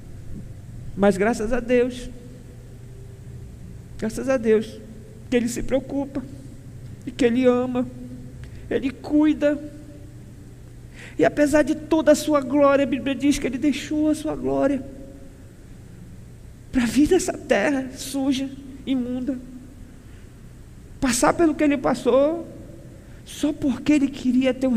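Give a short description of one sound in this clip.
A man preaches with animation through a microphone, pausing between phrases.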